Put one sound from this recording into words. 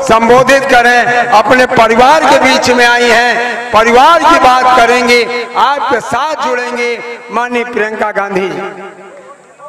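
An elderly man speaks loudly and with animation through a microphone and loudspeakers.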